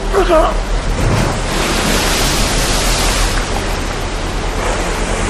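Water rushes and churns loudly.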